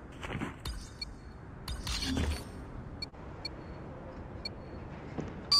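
Short electronic beeps sound at a steady pace, counting down.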